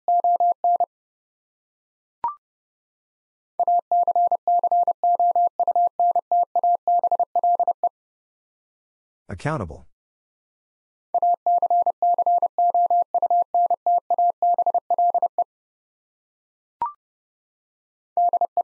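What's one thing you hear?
A telegraph key sends rapid bursts of steady high beeps in Morse code.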